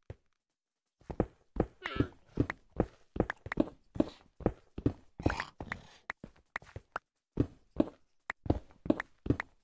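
A pickaxe chips and breaks stone blocks in quick, repeated knocks.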